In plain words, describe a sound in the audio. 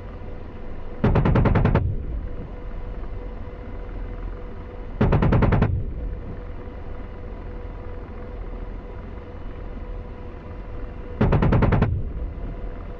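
A cannon fires short rapid bursts.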